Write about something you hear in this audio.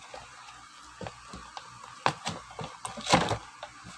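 Cardboard backing tears.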